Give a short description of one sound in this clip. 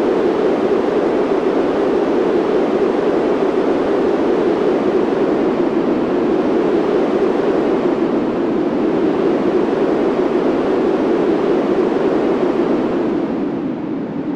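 A roller coaster train rumbles steadily along its track.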